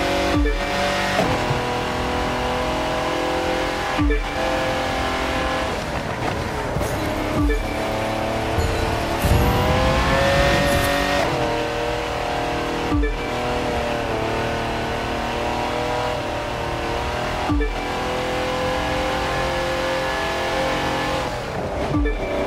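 A racing car engine roars at high revs, dropping briefly with each gear change.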